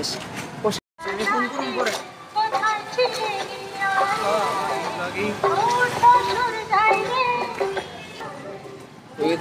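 Young men talk with animation close by.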